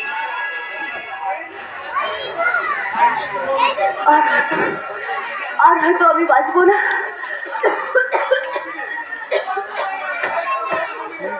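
A woman recites expressively through a loudspeaker.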